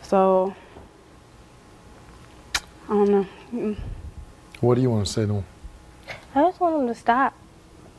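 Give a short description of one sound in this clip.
A woman speaks emotionally in short bursts nearby.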